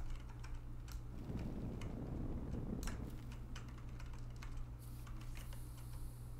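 Light footsteps patter on stone.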